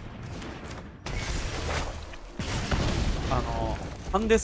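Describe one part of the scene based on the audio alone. A game's fiery magic effect whooshes and crackles.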